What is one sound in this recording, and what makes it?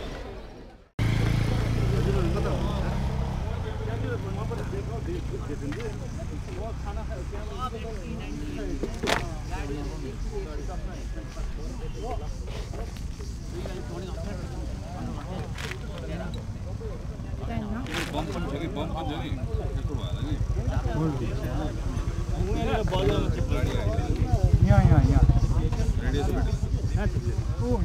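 Several young men talk nearby outdoors, their voices overlapping.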